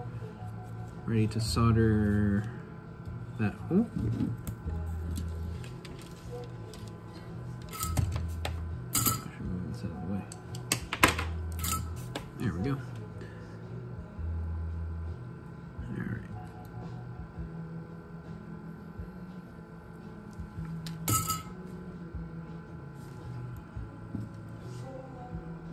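Small metal parts click and clatter as they are handled.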